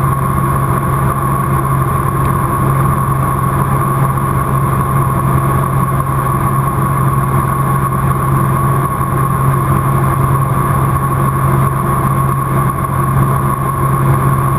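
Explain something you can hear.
A small aircraft engine drones loudly and steadily inside the cockpit.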